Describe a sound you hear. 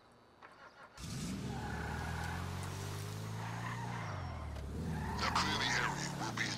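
A car engine revs and runs as the car drives off.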